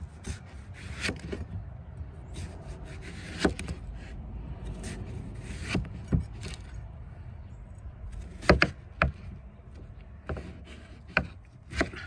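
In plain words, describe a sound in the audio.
A knife slices through a ripe melon and taps on a plastic cutting board.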